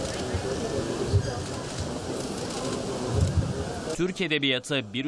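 A man recites a prayer through a loudspeaker outdoors.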